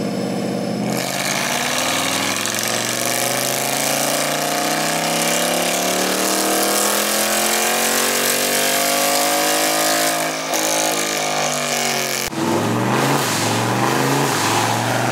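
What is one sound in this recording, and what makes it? A powerful exhaust roars and rasps close by.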